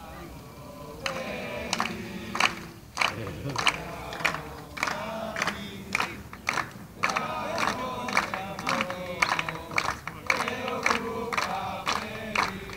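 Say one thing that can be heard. A group of young players chants loudly together outdoors.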